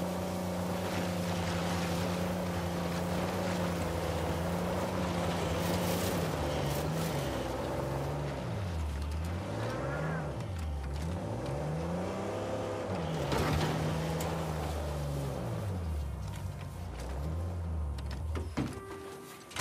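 Tyres crunch over dirt and rocks.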